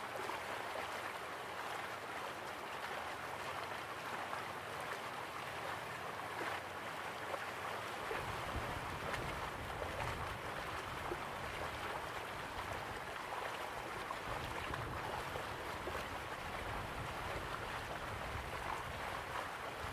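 A waterfall rushes and roars steadily.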